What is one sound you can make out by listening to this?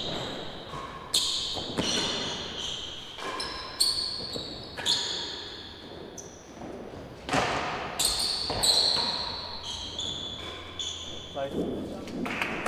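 A ball smacks off rackets and walls with a sharp echo in a large hall.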